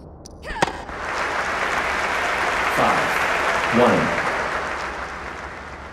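A stadium crowd cheers and applauds.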